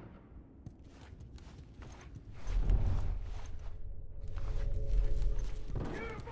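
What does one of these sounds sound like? Footsteps patter quickly on a wooden floor.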